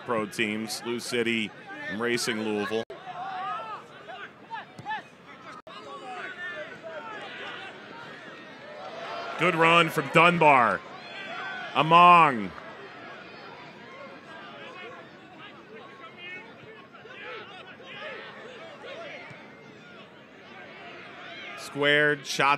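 A crowd murmurs and cheers in an open-air stadium.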